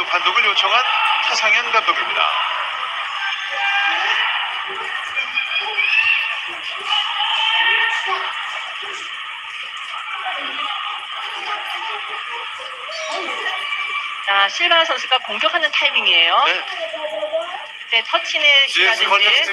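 A large crowd cheers and chatters in a big echoing arena.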